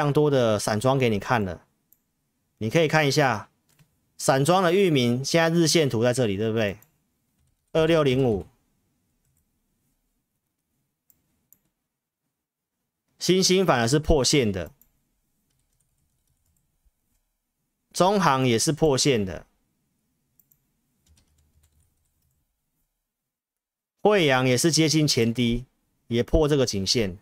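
A man speaks calmly and close to a microphone, in short bursts with long pauses.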